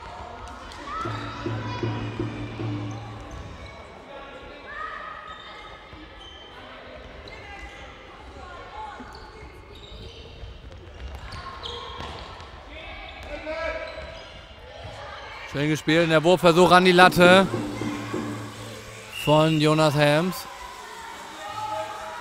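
Young players call out to each other in a large echoing hall.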